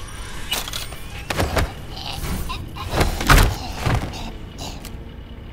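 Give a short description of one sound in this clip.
Punches thud heavily against a body in a scuffle.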